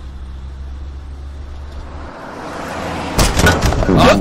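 A car speeds past.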